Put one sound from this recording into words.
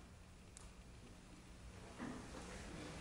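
A violin holds a soft, quiet final note in a hall.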